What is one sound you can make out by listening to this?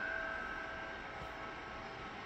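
A bell rings once and slowly fades away.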